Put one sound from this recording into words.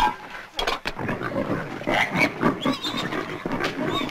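Pigs grunt and squeal.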